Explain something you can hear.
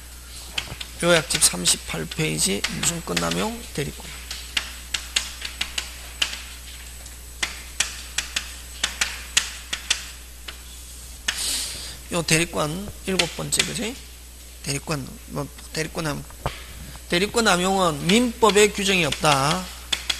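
A middle-aged man lectures through a microphone in a calm, steady voice.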